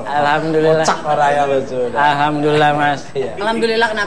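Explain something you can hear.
An older man laughs heartily.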